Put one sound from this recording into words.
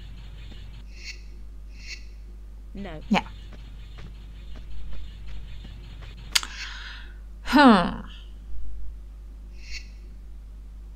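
A short electronic menu chime sounds a few times.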